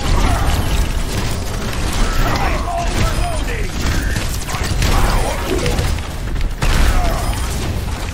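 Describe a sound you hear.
Video game explosions boom.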